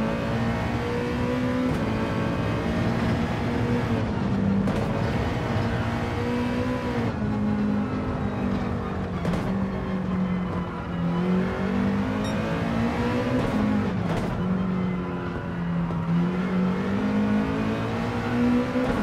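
A racing car engine roars steadily, its pitch rising and falling as it shifts gears.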